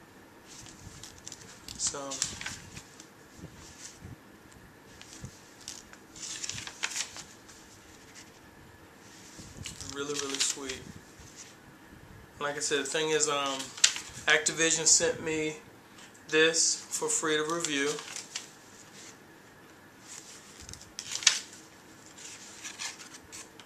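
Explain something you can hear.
Paper pages rustle as a small booklet is turned.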